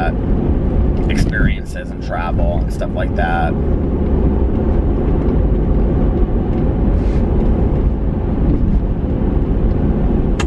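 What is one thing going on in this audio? A car engine and road noise rumble low and steadily.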